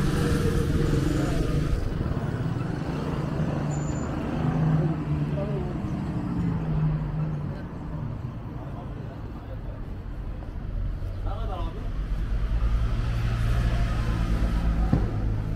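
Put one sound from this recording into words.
Traffic rumbles steadily along a busy street outdoors.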